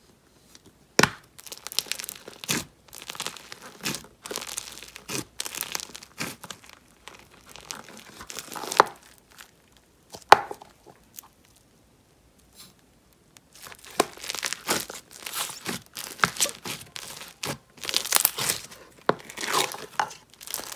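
Fingers squish and crackle through foamy slime, close up.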